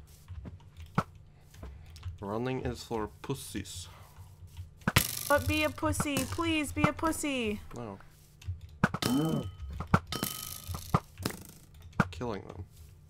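A bow twangs as arrows are shot.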